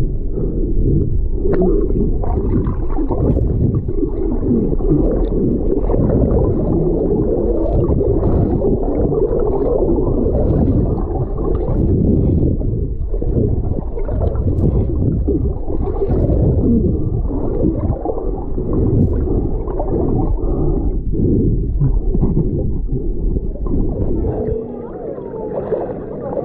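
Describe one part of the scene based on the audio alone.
Water swirls and bubbles, heard muffled from underwater.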